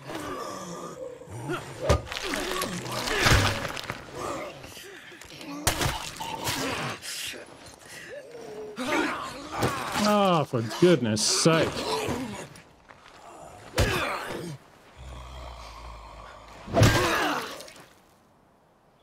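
Heavy punches and blows thud in a scuffle.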